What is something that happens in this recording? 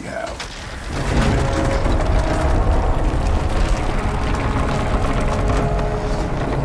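A large fire roars steadily.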